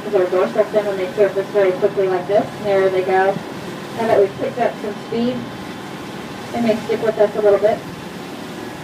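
A woman speaks excitedly close by.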